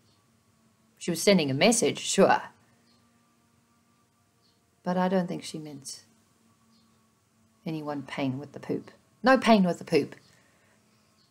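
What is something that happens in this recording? A woman speaks calmly and close to a microphone, in short bursts with pauses.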